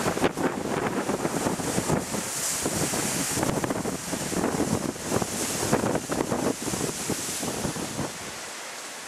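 Leaves rustle and thrash in the wind.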